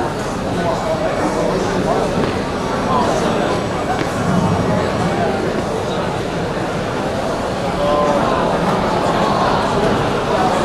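A large crowd of young people chatters and cheers in a big echoing hall.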